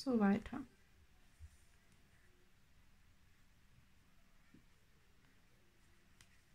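A crochet hook pulls yarn through stitches.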